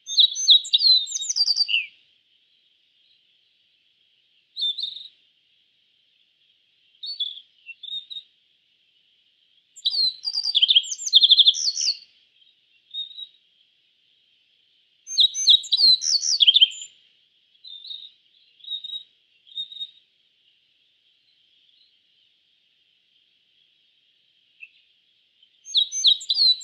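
A small songbird sings bright, high chirping phrases in bursts with pauses between.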